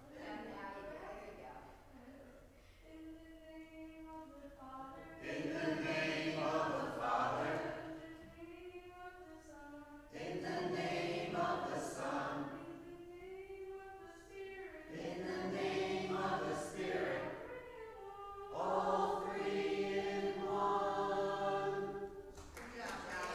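A teenage boy sings loudly in an echoing hall.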